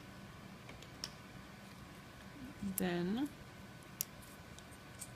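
Metal tweezers click against a small metal part.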